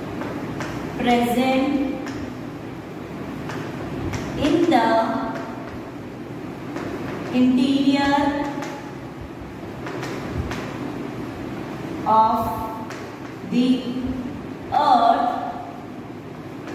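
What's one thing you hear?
A woman speaks calmly, as if teaching, close by.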